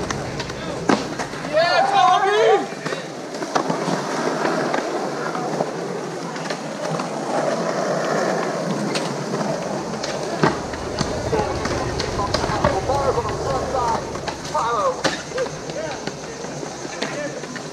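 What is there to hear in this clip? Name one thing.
Skateboards clack and snap on concrete.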